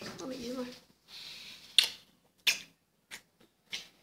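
A young man and a young woman kiss.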